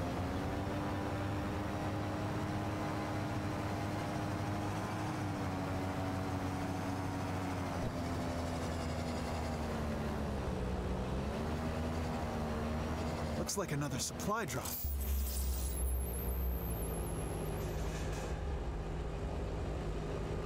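Twin rotors of a small flying craft hum steadily, rising and falling in pitch.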